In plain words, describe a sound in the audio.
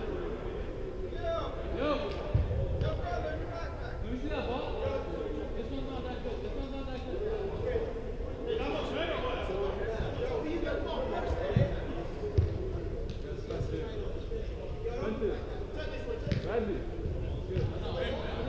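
Players shout and call to each other across a large echoing indoor hall.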